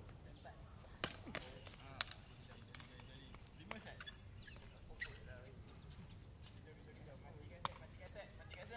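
A ball is kicked with sharp thuds outdoors.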